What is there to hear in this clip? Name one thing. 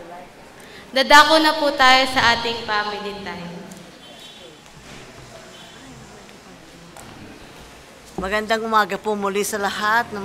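A woman speaks through a microphone and loudspeakers in a large echoing hall.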